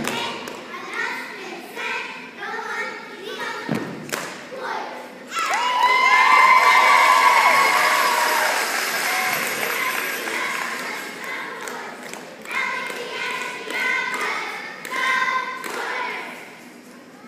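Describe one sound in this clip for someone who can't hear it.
Young girls shout a rhythmic chant in unison in a large echoing hall.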